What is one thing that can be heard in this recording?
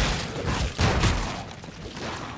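A rifle fires loud bursts of gunshots.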